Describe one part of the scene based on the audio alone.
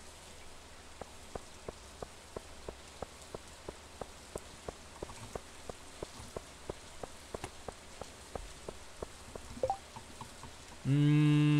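Footsteps tap steadily on stone paving.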